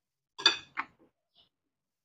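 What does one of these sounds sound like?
Hands toss leafy vegetables in a glass bowl.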